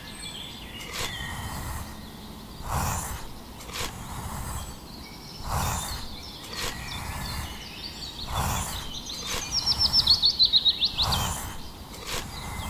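A small shovel scrapes through sand.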